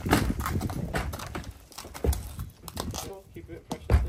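Horse hooves thud on a wooden ramp.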